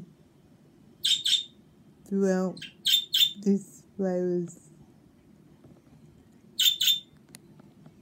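Budgies chirp sharply in short bursts.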